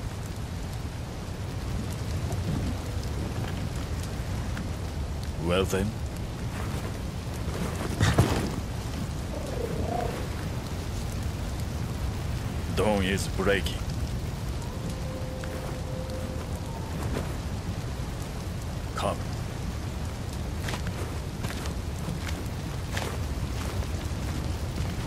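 A fire roars and crackles steadily.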